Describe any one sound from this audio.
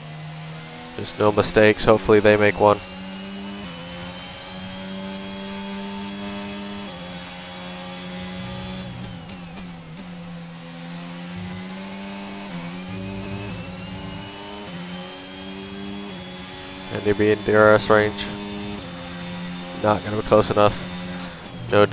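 A racing car engine whines steadily, rising and dropping in pitch as it shifts gears.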